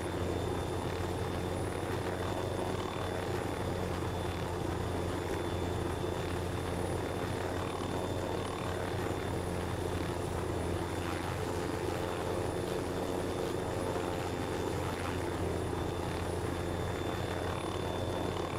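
A helicopter's rotor thumps and its engine drones steadily.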